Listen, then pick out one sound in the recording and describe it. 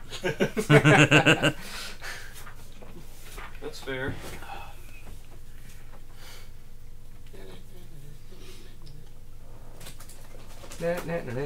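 Several men talk and laugh over an online call.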